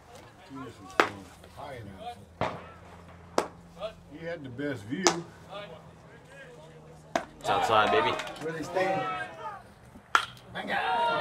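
A baseball pops sharply into a catcher's mitt several times, heard from a distance.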